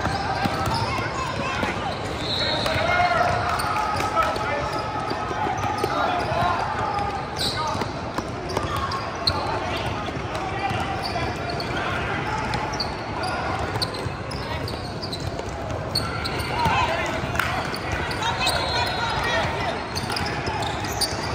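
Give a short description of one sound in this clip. Basketball shoes squeak sharply on a wooden floor in a large echoing gym.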